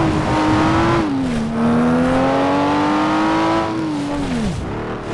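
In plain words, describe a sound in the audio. A racing car engine roars loudly, its pitch dropping as it shifts gears and winding down near the end.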